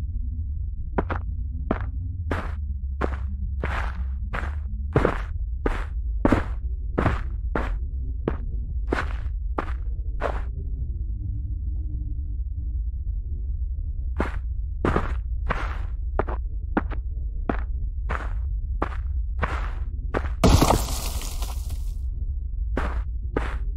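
Footsteps crunch steadily through dry leaves and undergrowth.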